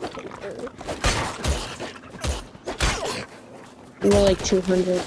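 An axe chops at wood with sharp knocks.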